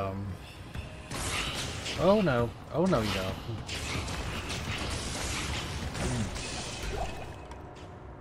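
Spells crackle and whoosh in a game fight.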